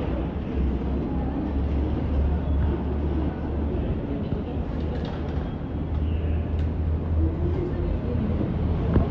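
Suitcases thump and scrape as they are loaded into a van.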